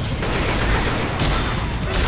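A rifle butt thumps heavily against a body.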